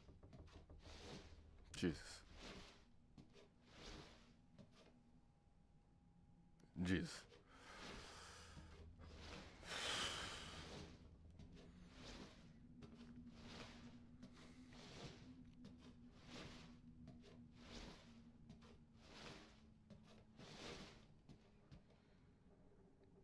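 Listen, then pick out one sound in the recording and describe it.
A man breathes heavily close to a microphone.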